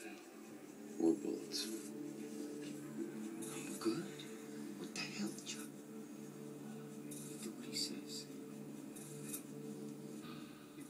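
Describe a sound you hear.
A man speaks calmly, heard through a television loudspeaker.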